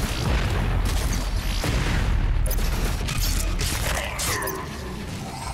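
Monsters roar and snarl.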